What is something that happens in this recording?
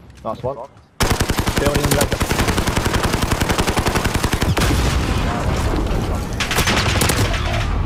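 An automatic rifle fires in fast, steady bursts.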